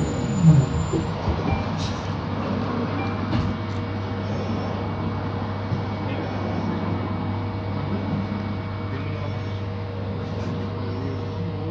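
A bus engine hums steadily while the bus rides along.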